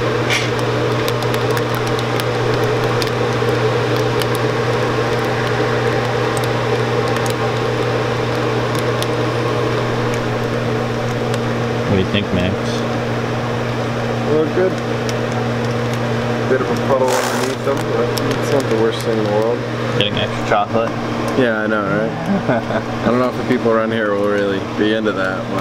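A machine hums steadily with a low drone.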